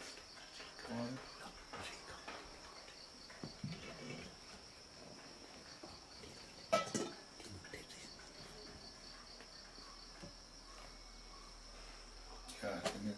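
An elderly man speaks calmly and quietly, close by, with pauses.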